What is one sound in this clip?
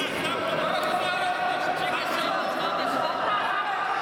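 A man calls out commands loudly in a large echoing hall.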